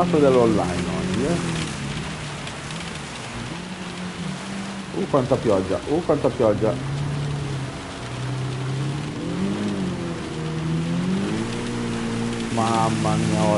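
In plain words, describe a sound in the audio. A racing car engine hums and revs up and down through gear changes.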